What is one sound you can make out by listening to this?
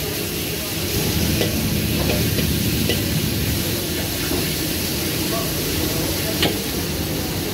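A metal ladle scrapes and clanks against a wok.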